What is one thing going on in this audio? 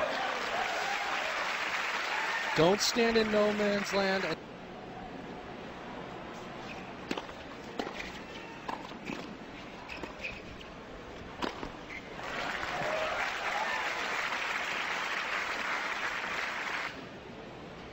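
A crowd applauds and cheers in a large open stadium.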